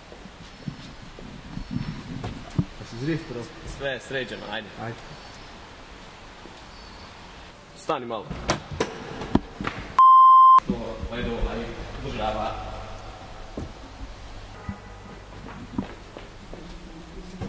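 A young man talks and laughs with animation close by, in an echoing space.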